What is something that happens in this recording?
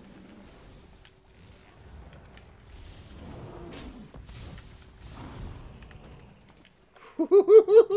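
Magic spells crackle and blast in a fight.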